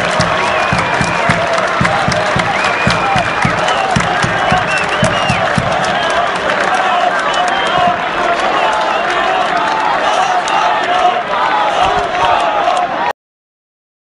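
A large crowd of fans cheers and sings loudly outdoors.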